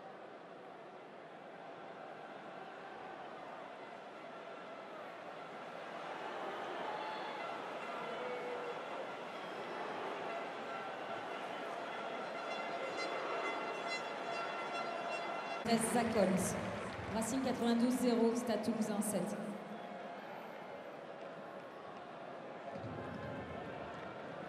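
A large stadium crowd roars and cheers, growing louder as play goes on.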